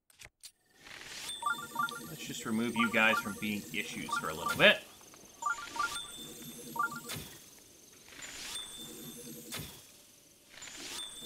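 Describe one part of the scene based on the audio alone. A bowstring snaps as arrows are shot.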